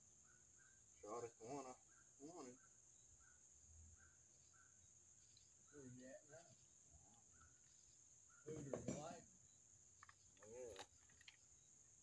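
A man talks casually nearby.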